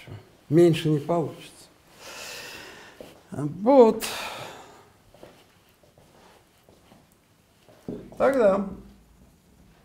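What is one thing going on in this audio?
An elderly man lectures in a calm voice, in short bursts.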